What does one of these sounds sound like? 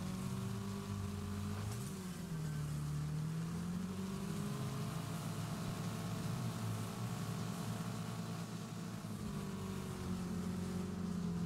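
A rally car engine revs loudly and changes pitch as it speeds up and slows down.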